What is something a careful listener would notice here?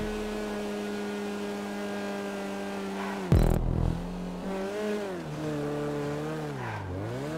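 A small car engine hums steadily, then rises and falls in pitch as it speeds up and slows.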